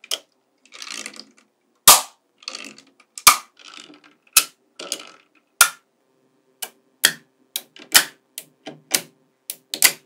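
Small steel magnetic balls click sharply into place.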